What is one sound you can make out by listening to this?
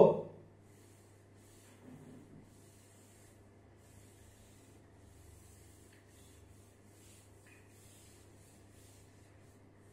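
A cloth rubs softly across a chalkboard.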